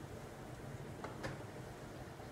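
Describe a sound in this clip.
A lid clinks on a pot.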